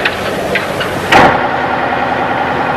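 A truck engine hums steadily from inside the cab.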